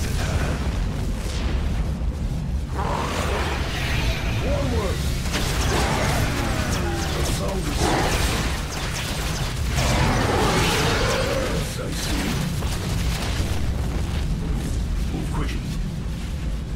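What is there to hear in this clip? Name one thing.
Laser blasts and explosions crackle in a busy video game battle.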